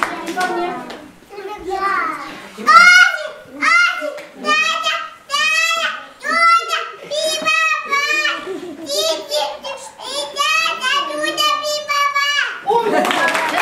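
A little girl speaks in a high, clear voice.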